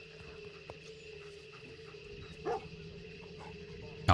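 A dog whimpers softly.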